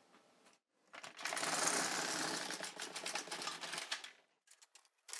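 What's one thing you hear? A machine carriage slides with a rough rumbling along a metal bed.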